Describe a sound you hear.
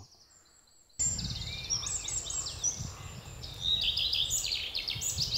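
A bird sings loudly and close by, outdoors.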